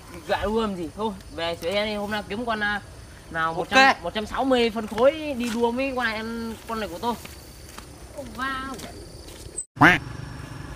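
A second young man answers with animation close by.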